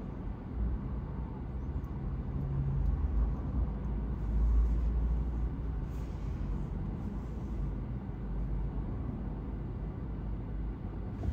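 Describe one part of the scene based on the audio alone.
Car engines rumble steadily as traffic passes.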